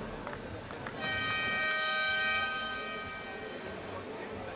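A loud buzzer sounds briefly in the hall.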